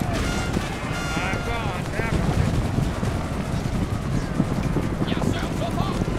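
A horse gallops.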